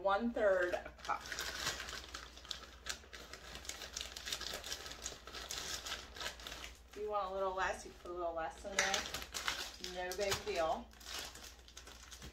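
Paper crinkles and rustles as it is unwrapped.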